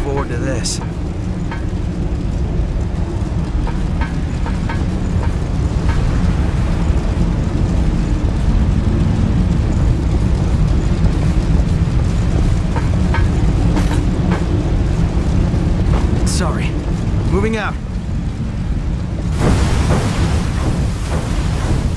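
Flames roar and crackle steadily.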